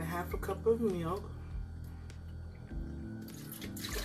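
Milk pours and splashes into a blender jar.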